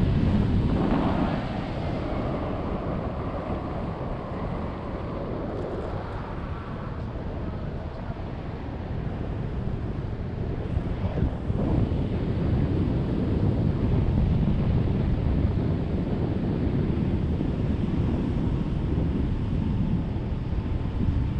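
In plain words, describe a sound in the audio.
Wind rushes loudly past a microphone high in the open air.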